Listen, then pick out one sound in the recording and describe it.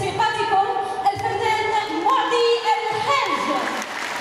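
A children's choir sings together in a large echoing hall.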